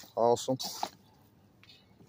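A hand squishes and tosses raw chicken in a metal bowl.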